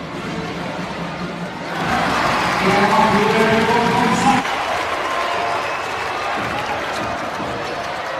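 A large crowd in an echoing arena cheers loudly, rising and then settling.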